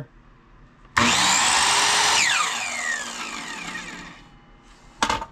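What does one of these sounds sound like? A saw motor whirs loudly, then winds down.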